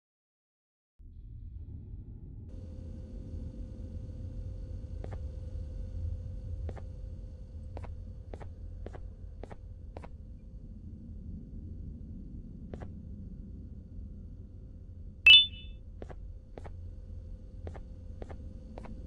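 A low hum drones steadily.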